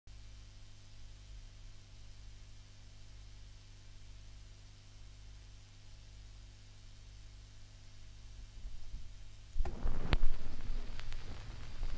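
A vinyl record crackles softly as it spins.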